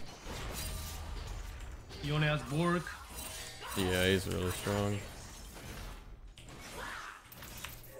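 Magic blasts and blows clash in a fast fight.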